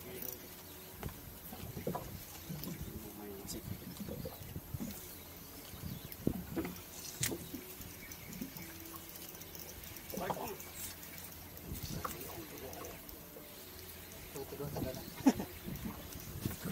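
A fishing reel clicks and whirs as line is pulled.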